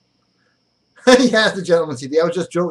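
A middle-aged man laughs.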